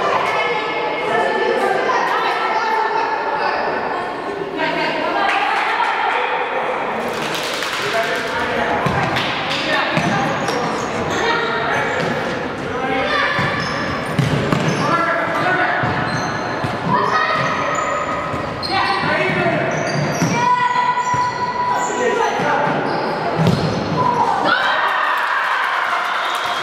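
Spectators close by chatter in a large echoing hall.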